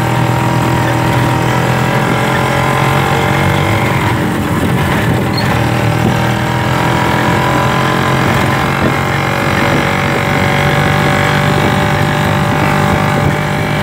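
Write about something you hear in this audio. A small motorcycle engine hums steadily while riding along a street.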